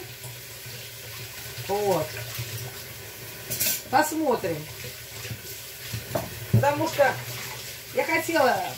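Water runs from a tap.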